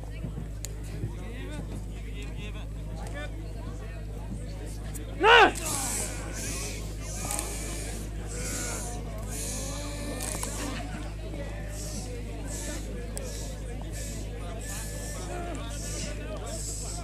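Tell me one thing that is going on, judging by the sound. A crowd cheers and shouts at a distance outdoors.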